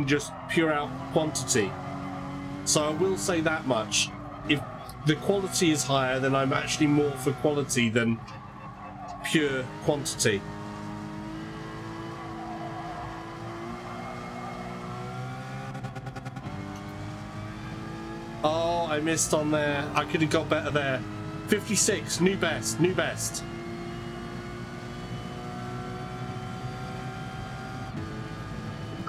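A racing car engine hums steadily and revs up as it speeds along.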